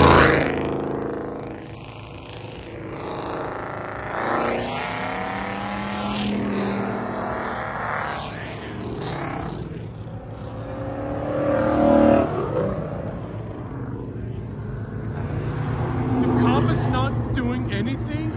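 Sports car engines rev loudly and roar past one after another.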